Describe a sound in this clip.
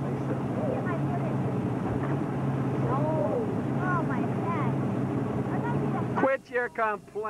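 A boat motor hums steadily, then cuts out.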